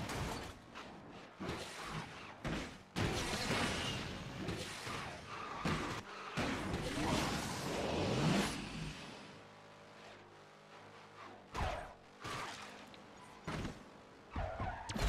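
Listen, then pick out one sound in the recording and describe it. A racing car engine roars at high speed.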